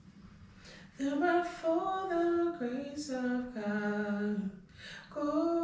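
A man sings a short phrase close to a microphone.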